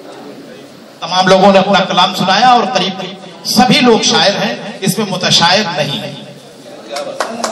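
A young man recites with feeling into a microphone over a loudspeaker.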